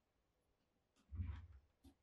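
A plastic tool scrapes against leather.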